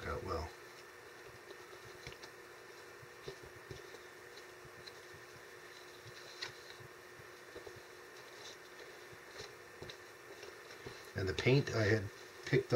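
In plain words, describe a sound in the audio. A trowel scrapes and smooths wet plaster.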